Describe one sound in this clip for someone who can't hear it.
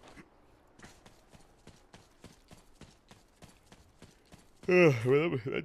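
Footsteps crunch steadily on the ground.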